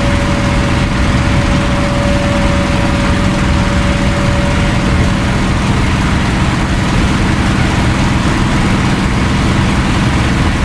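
Wind rushes past a plane's cockpit.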